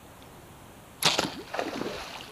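A bow string snaps as an arrow is shot.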